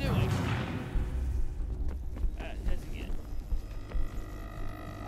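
Footsteps thud and land heavily on a hard floor.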